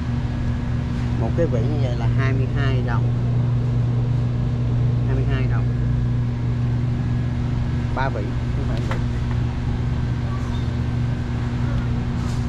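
A refrigerated display case hums steadily.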